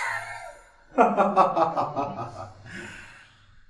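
A man laughs heartily up close.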